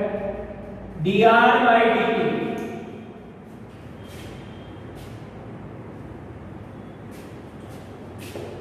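Chalk taps on a blackboard.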